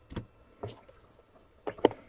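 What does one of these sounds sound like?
A small box is set down on a table with a light knock.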